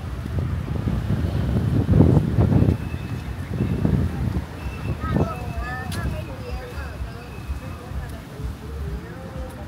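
Wind gusts outdoors, rumbling loudly at first.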